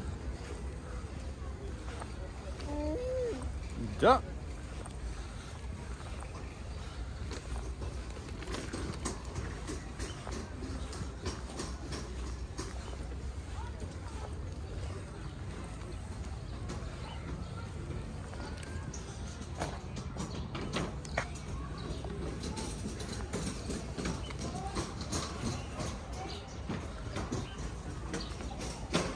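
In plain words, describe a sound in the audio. Stroller wheels roll and rumble steadily over a paved path.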